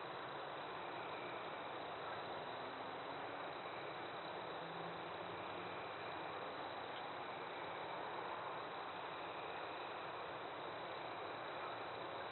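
An animal's hooves rustle through dry leaves.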